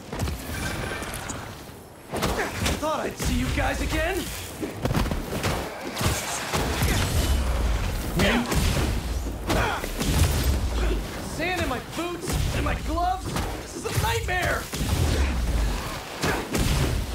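Punches and thuds land in a fast fight.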